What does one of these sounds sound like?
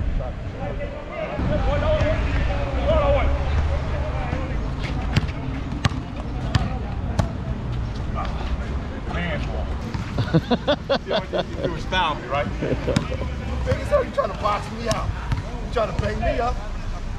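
Men talk casually outdoors nearby.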